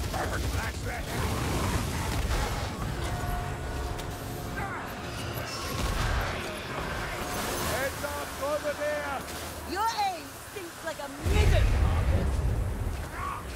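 A gun fires loud blasts.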